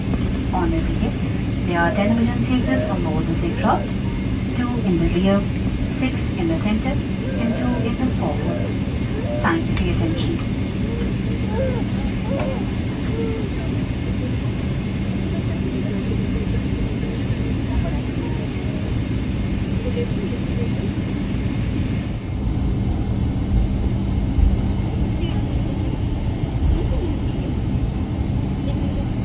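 A jet engine hums steadily, heard from inside an aircraft cabin.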